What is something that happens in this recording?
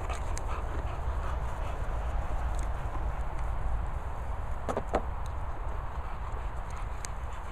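A dog's paws patter across grass.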